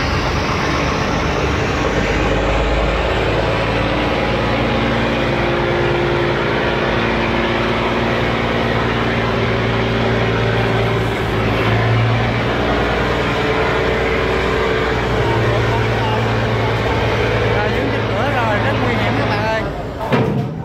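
Water churns against a barge hull.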